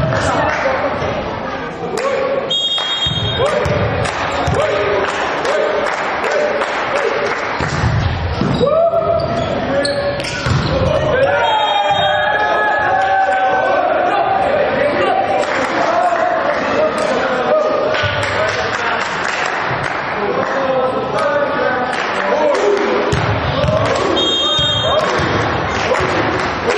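A volleyball is struck hard in an echoing sports hall.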